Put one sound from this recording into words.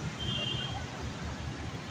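Traffic hums in the distance outdoors.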